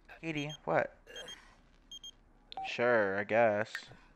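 A short electronic chime sounds for a notification.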